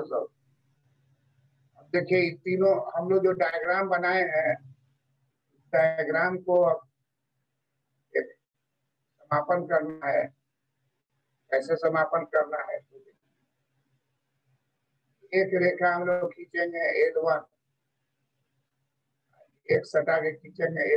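An elderly man speaks calmly over an online call, in short bursts with pauses.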